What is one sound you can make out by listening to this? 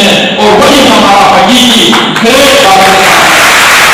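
A man speaks forcefully through a microphone, his voice echoing in a large hall.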